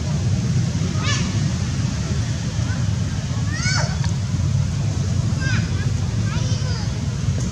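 A baby monkey squeaks in short high cries.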